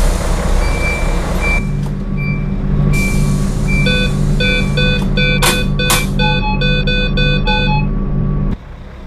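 A bus warning chime beeps repeatedly.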